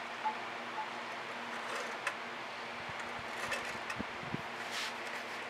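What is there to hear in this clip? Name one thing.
A wooden board slides and knocks softly on a tabletop.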